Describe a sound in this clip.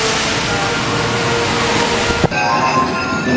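Water rushes and splashes loudly as a boat plunges down a chute.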